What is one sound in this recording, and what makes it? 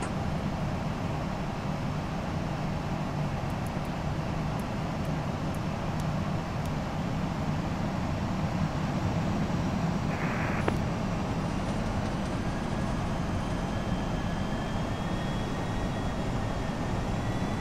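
Jet engines hum steadily with a low, even rumble.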